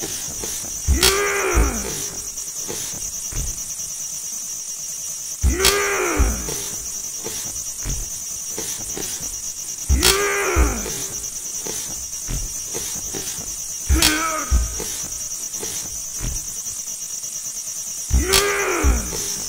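Wooden practice swords clack together.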